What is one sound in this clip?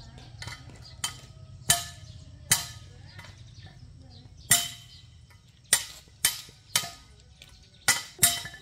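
A hammer taps on metal with sharp, ringing knocks.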